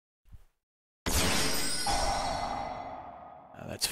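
A game sound effect bursts out loudly and slowly fades.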